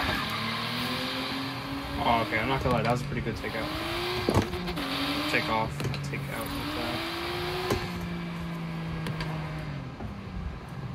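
A car engine revs up and down through gear changes.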